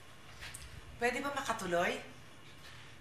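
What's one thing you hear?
A young woman speaks sharply nearby.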